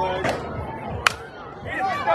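A softball bat cracks against a ball.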